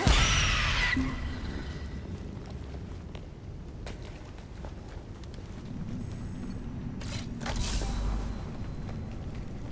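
Footsteps run over gravel.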